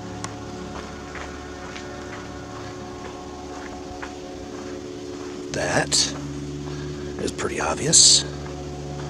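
Footsteps scuff along a sandy dirt path.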